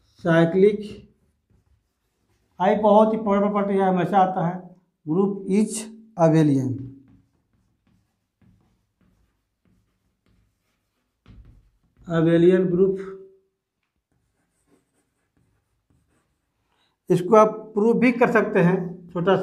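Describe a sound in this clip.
An adult man speaks calmly, close by, in short phrases with pauses.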